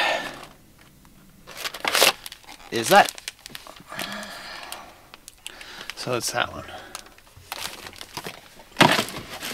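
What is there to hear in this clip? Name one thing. Cardboard packaging rustles and crinkles in a man's hands.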